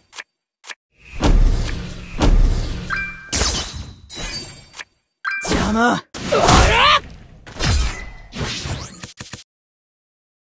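Magical attacks whoosh and strike with booming crashes.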